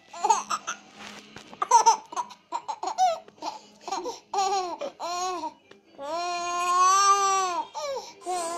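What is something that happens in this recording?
A baby laughs in short bursts.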